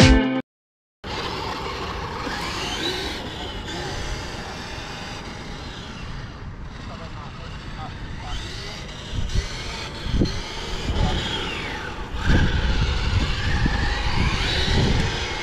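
A toy truck's small electric motor whines, rising and falling in pitch as it speeds up and slows.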